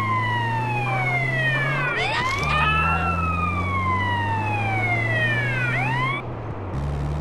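An ambulance siren wails, rising and falling.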